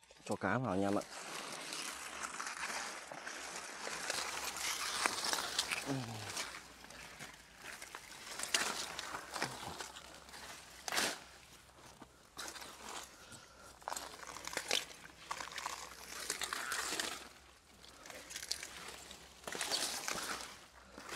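Leaves rustle and crackle as a person handles plants close by.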